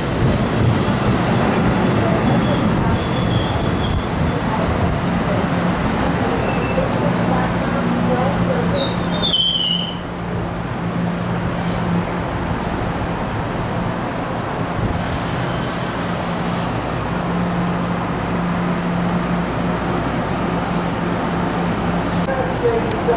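An electric commuter train rolls slowly past, its steel wheels rumbling on the rails.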